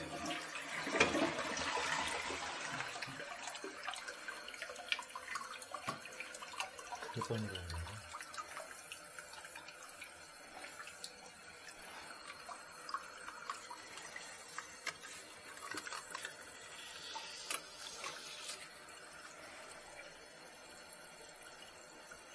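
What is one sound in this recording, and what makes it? Plastic toilet tank parts click and rattle under gloved hands.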